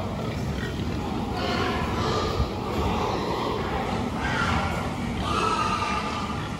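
Many pigs grunt and squeal close by.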